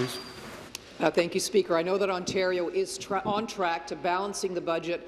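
A woman speaks clearly and steadily through a microphone.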